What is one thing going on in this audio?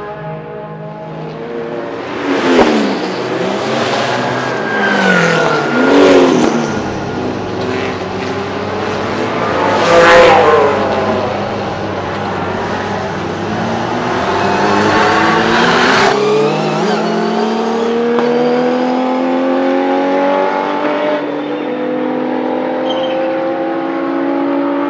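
A sports car engine roars and revs as the car drives around a track.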